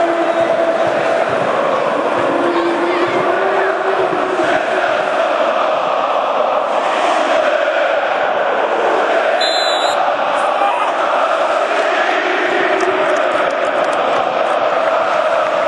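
A large stadium crowd sings and chants loudly throughout.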